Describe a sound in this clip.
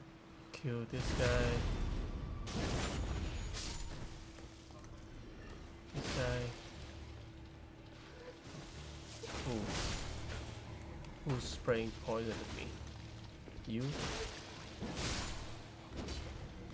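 Sword blows and magic bursts crash loudly.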